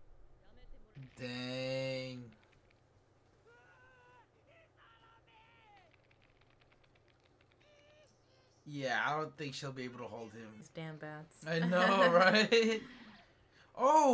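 A young man talks and laughs close to a microphone.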